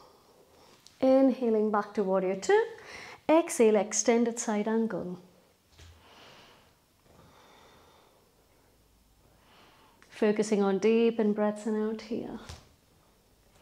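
A young woman speaks calmly and clearly, close to a microphone.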